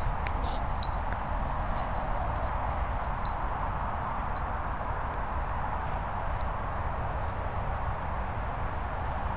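A dog sniffs and pads about on grass.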